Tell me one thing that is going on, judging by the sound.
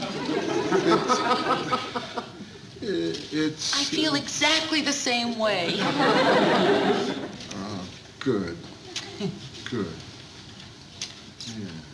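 A middle-aged man speaks gruffly and with feeling, close by.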